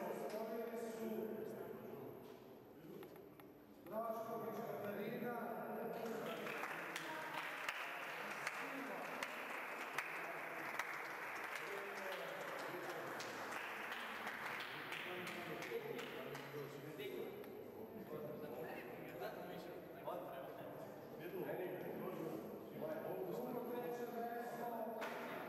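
A man talks nearby in an echoing hall.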